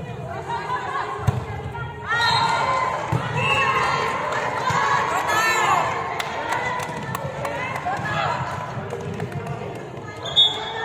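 Young women shout and call out to each other in a large echoing hall.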